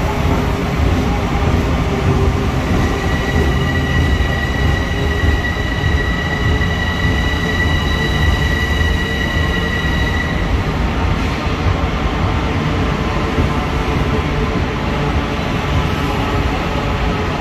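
A train engine rumbles steadily beside an echoing platform.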